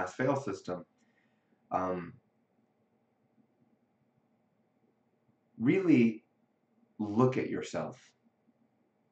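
A young man speaks calmly in short bursts, close to the microphone.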